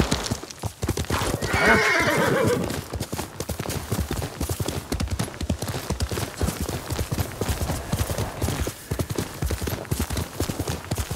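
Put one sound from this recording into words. Horse hooves thud rapidly on grass and dirt.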